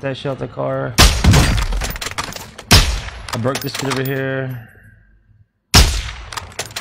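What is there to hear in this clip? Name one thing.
A sniper rifle fires loud shots in a video game.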